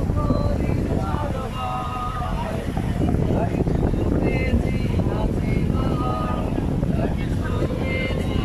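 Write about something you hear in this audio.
Water laps gently nearby.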